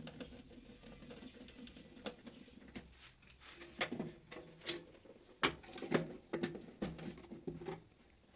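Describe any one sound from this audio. Wires rustle and click against plastic as hands work them into place.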